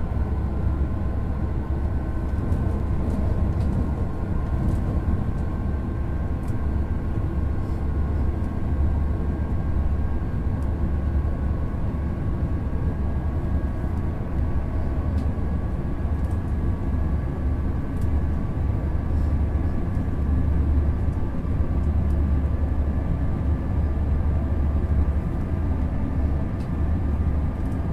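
A train's motor hums with a steady whine.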